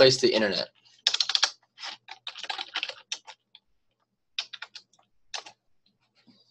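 A keyboard clicks as someone types.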